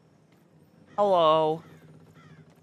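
A young woman exclaims loudly through a microphone.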